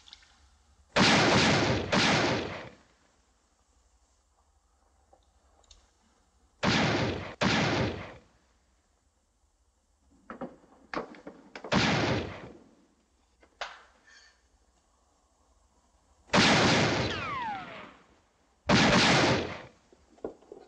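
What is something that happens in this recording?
Loud gunshots ring out several times with echoing reverberation.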